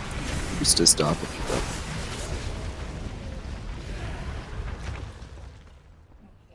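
Magic spells crackle and blast in a fight.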